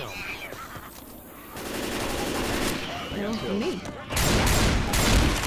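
Zombies snarl and growl nearby.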